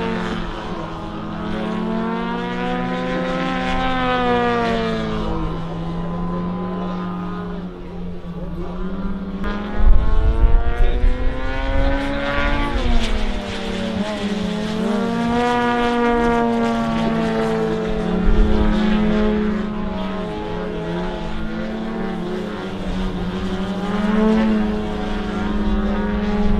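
Small propeller plane engines drone overhead, their pitch swelling and falling as the planes loop and dive.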